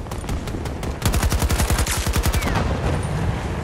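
A rifle fires in rapid bursts close by.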